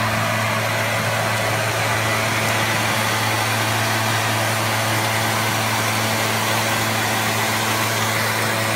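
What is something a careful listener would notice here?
A leaf blower engine roars loudly and steadily close by.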